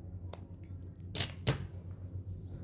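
Wooden sticks tap down onto a hard surface.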